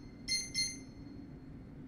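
Short electronic menu chimes ring.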